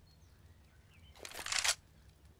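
A rifle is drawn with a sharp metallic clack.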